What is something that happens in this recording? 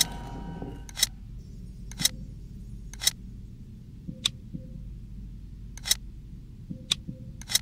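Soft clicks sound as game pieces snap into place.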